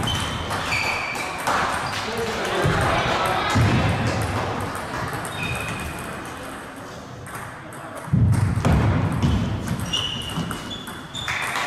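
A table tennis ball clicks quickly back and forth off paddles and a table.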